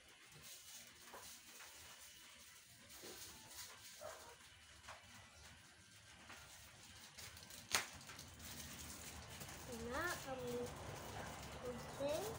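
A phone game plays quiet sound effects.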